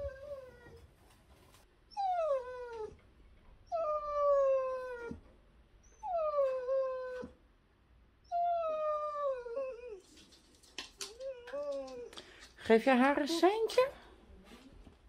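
A dog howls close by in long, falling wails.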